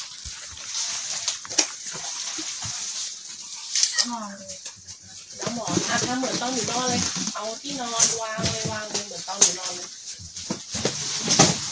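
Cardboard boxes rustle and thump as they are moved.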